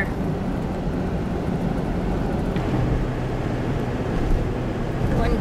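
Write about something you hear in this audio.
Tyres rumble and hiss on a slushy road.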